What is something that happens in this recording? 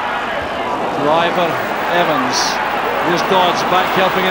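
Crowd members shout and chant loudly.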